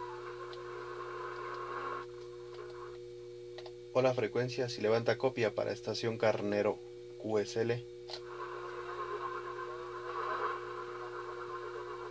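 Radio static hisses softly between transmissions.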